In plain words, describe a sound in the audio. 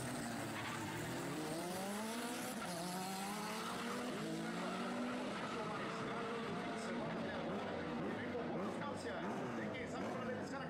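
A car engine roars as the car accelerates hard away, rising in pitch through several gear changes.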